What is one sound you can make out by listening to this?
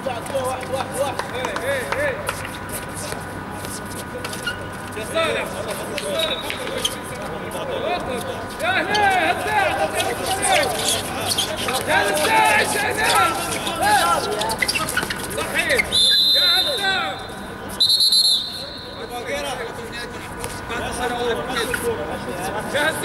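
Young men shout and call out across an outdoor court.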